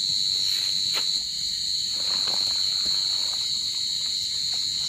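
A tent pole clicks and scrapes as it slides into place.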